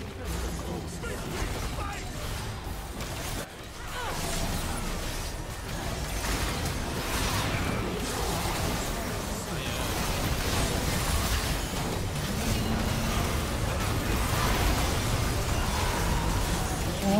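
Game battle sounds of spells blasting and clashing play throughout.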